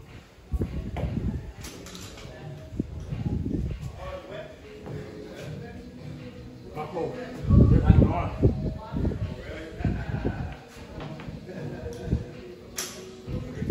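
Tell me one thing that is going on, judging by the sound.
A barbell with weights clanks on the floor.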